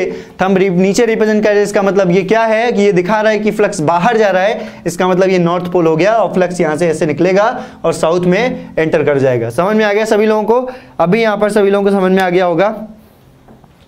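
A young man lectures with animation close to a microphone.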